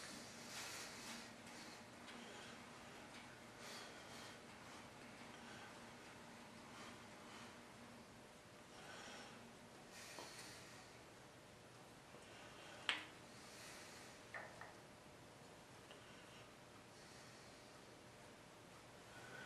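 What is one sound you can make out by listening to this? A metal handwheel clicks faintly as it is turned by hand.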